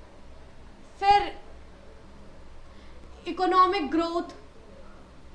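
A young woman speaks clearly in short bursts.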